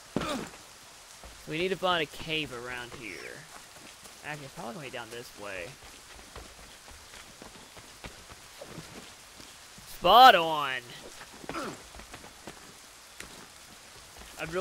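Footsteps run and scrape over grass and rock.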